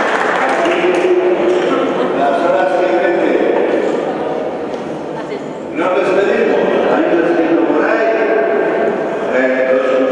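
A choir of women sings in a large echoing hall.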